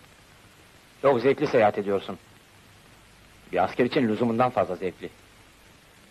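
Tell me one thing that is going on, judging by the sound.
A young woman speaks softly.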